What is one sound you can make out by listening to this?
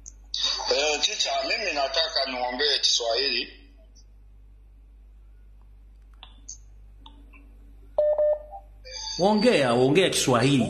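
A man speaks close to a phone microphone, pausing now and then.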